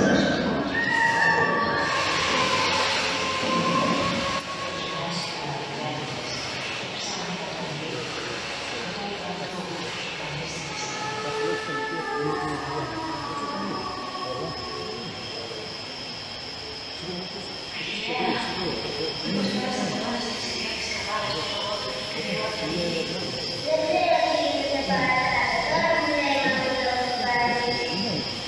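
Music plays through loudspeakers in a large echoing hall.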